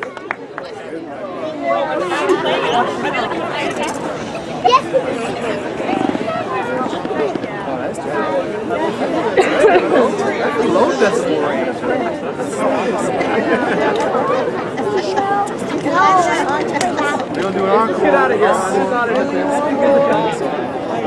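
A school band plays a festive tune on brass and woodwind instruments outdoors.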